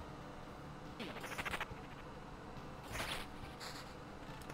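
Blades clash and strike in short bursts.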